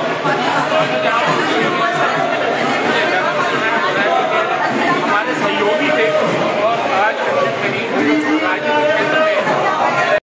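A crowd of men talks loudly and overlapping close by.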